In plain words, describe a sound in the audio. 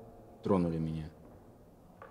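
A man speaks briefly and calmly nearby.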